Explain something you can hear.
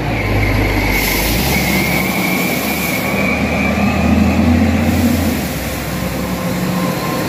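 Truck tyres crunch over a gravel road.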